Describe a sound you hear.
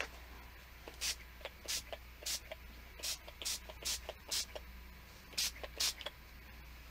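A brush dabs paint onto paper in short, soft taps.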